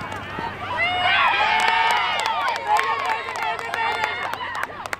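Girls cheer loudly together.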